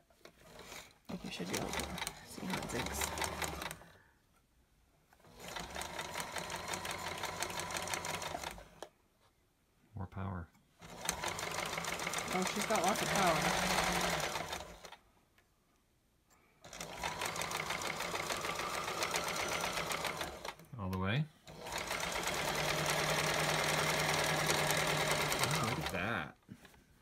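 A sewing machine whirs and rattles in short bursts, stopping and starting.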